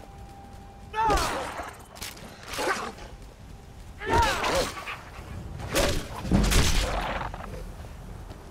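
Wolves snarl and growl aggressively.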